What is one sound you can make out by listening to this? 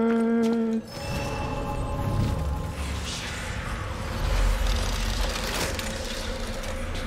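A shimmering magical hum swells and crackles.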